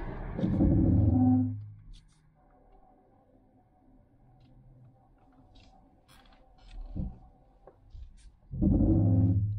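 A car engine hums quietly while driving.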